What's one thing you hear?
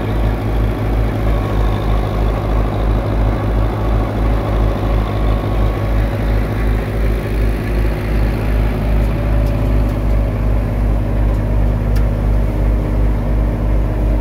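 A threshing machine whirs and rattles as it spins.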